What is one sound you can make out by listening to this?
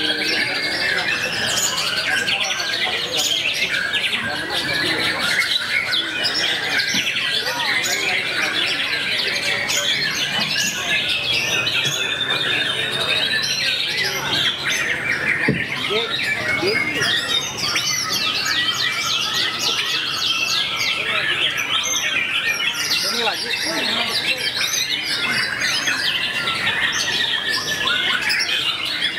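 A songbird chirps and whistles rapidly and busily.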